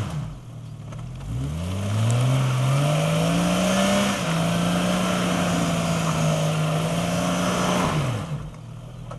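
An engine revs up hard, roars steadily, then drops back.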